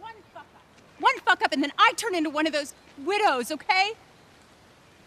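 A woman speaks with animation, asking questions.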